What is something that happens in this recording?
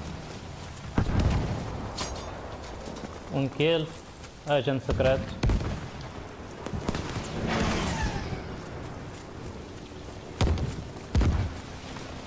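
Gunshots crack out now and then.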